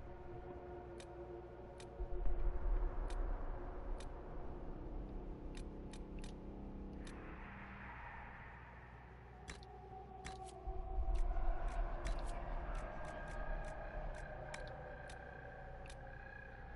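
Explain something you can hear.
Short sharp menu clicks sound again and again.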